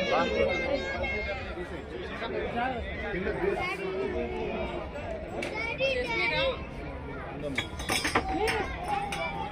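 Several people talk and call out nearby in a busy, noisy crowd.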